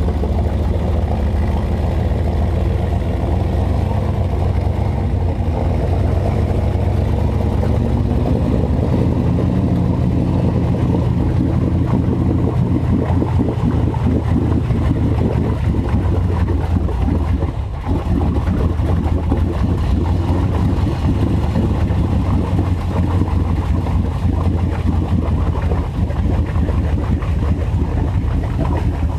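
An off-road engine rumbles and revs loudly close by.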